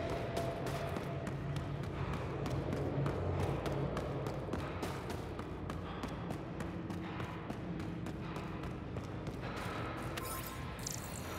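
Boots crunch on snow at a running pace.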